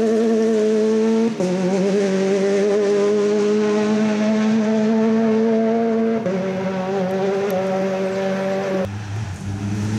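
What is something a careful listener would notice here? A rally car engine roars at high revs as it races closer.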